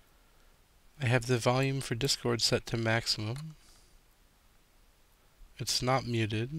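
A man talks calmly and close to a microphone, in short bursts.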